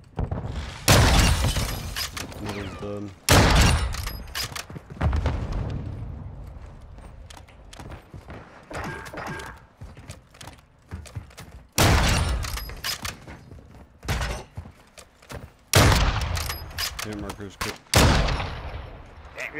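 Sniper rifle shots boom loudly, each followed by a sharp echo.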